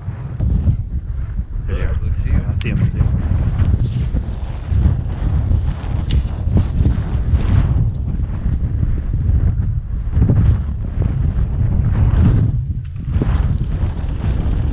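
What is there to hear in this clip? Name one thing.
Wind blows hard across open water, rumbling steadily.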